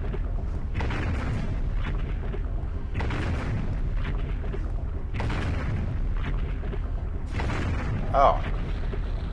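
A magical energy blast whooshes in repeated bursts.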